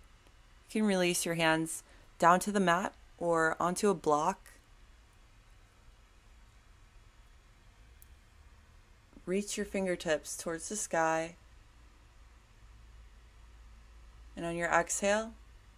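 A woman speaks calmly in short phrases, as if giving instructions, close by.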